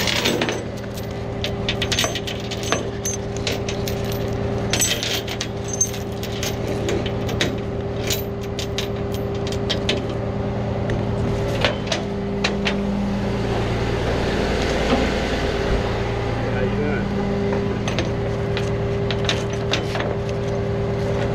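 Metal chain links clink and rattle close by.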